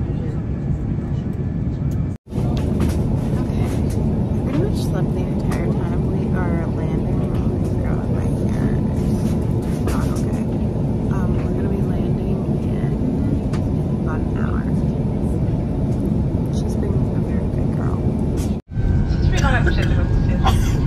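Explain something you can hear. A plane's engines roar steadily in the cabin.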